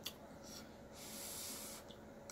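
A young woman slurps noodles close to a microphone.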